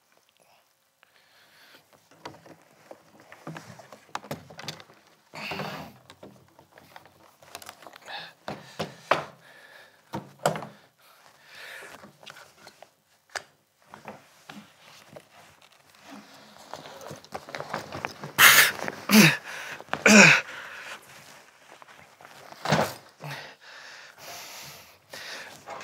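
A man rummages, with knocks and rustling.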